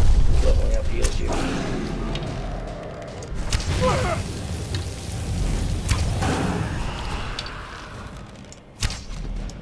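A bowstring twangs as an arrow flies off.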